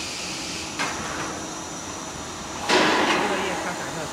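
A metal tray slides and clanks as it moves out of a machine.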